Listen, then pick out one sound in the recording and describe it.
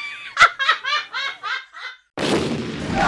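A woman laughs loudly and shrilly in bursts.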